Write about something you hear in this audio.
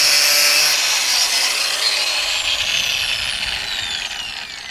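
An angle grinder spins down and its whine fades.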